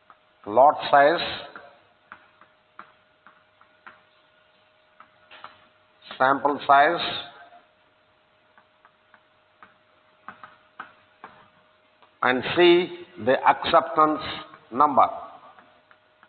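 An elderly man speaks calmly in a room with a slight echo.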